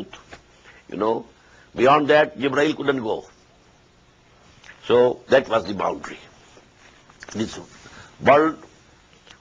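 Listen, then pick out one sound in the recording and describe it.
An elderly man speaks calmly and deliberately into a microphone, with pauses.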